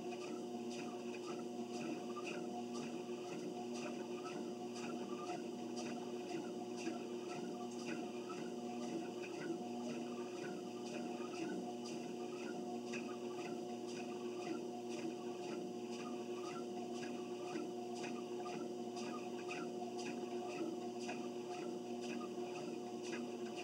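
Footsteps thud on a treadmill belt in a steady rhythm.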